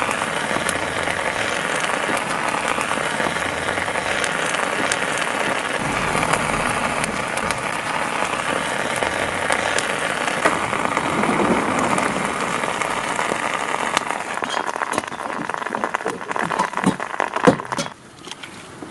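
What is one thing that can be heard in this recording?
Steam hisses and roars steadily from a cracked eggshell.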